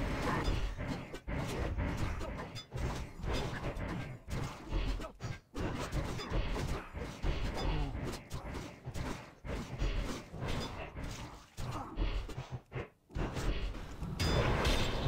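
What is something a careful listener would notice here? Blades clash and strike in quick, repeated hits.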